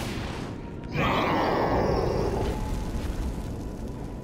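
A burst of energy whooshes and crackles.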